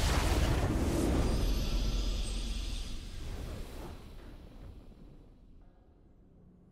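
A short triumphant fanfare plays and fades.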